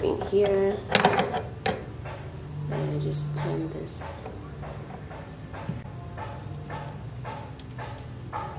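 A metal wrench clicks and scrapes against a bolt.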